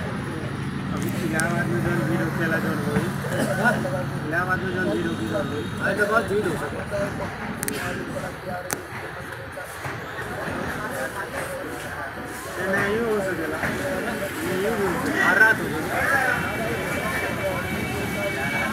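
Men chatter in a crowd.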